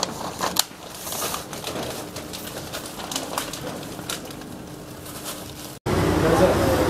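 Paper crinkles and rustles as hands fold it.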